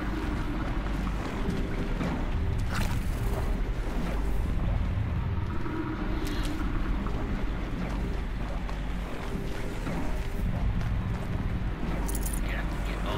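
A deep steady mechanical hum drones throughout.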